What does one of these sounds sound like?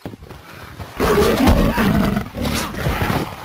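A bear growls and snarls.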